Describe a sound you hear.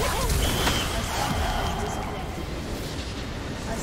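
Spell effects crackle and boom in a fast game battle.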